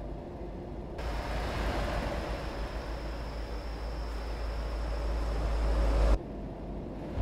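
A heavy truck rumbles past outside.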